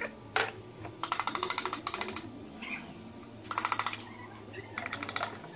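A ratchet wrench clicks rapidly in short bursts.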